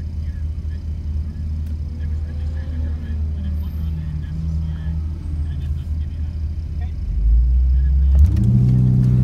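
A car engine idles with a low, steady rumble from inside the car.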